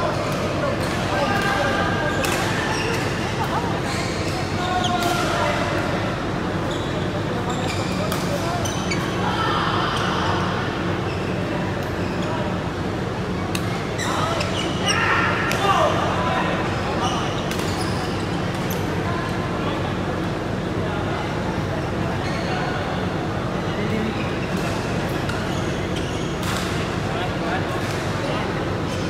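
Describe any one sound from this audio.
Rackets smack shuttlecocks with sharp pops in a large echoing hall.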